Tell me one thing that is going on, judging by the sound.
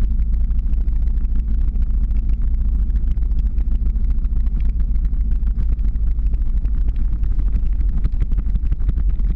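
Skateboard wheels rumble steadily over rough asphalt.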